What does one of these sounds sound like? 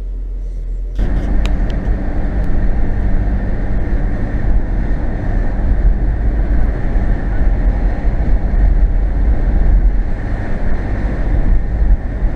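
A car drives along a road, its engine and tyres rumbling.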